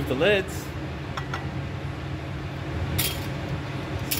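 A glass jar is set down with a light clink.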